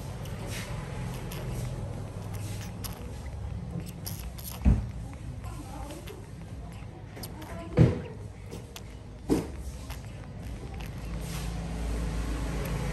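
A baby macaque sucks milk from a feeding bottle.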